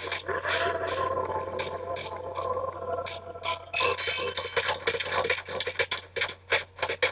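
Video game sound effects burst and whoosh from a television speaker.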